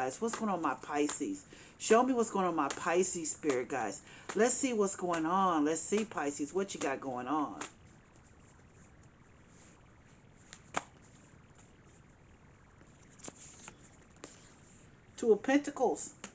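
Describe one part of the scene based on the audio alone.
Playing cards riffle and slap together as they are shuffled.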